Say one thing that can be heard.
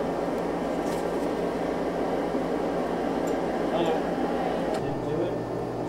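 A forge fire roars steadily.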